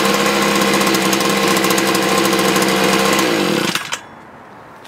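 A small two-stroke engine idles loudly, then winds down and stops.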